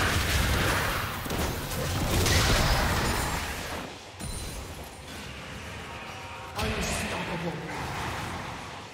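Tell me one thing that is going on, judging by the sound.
Game spell effects whoosh and burst in quick succession.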